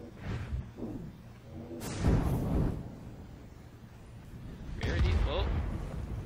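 Fire spells roar and burst.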